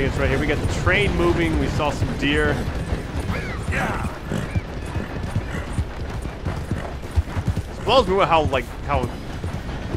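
A horse gallops, its hooves thudding on a dirt path.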